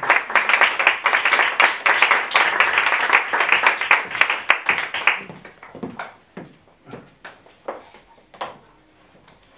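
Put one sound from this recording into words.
An audience applauds loudly, with the sound dying down into scattered claps.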